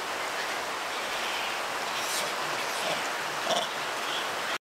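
A young monkey squeaks softly close by.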